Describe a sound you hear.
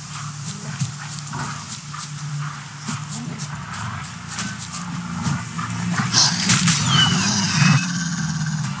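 A wild beast snarls and growls.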